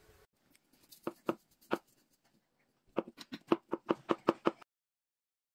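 A knife chops on a wooden board with sharp knocks.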